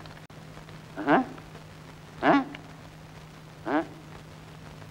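A man speaks briefly in short phrases, close by.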